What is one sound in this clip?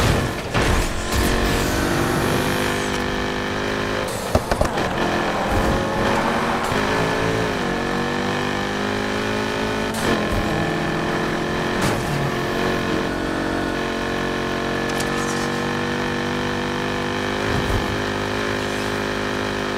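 A car engine roars at high revs, with gear shifts dipping the pitch.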